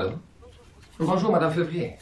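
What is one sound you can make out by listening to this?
A man speaks calmly into a telephone.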